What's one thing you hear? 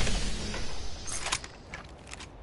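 An item is picked up with a short click.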